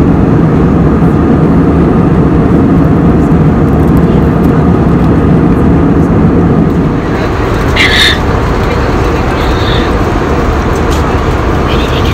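A plane's engines roar steadily inside the cabin.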